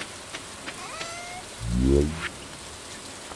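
A soft chime sounds as a menu opens.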